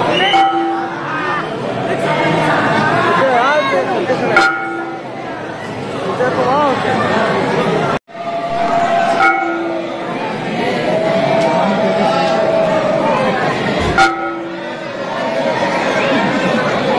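A large crowd murmurs and chatters in an echoing hall.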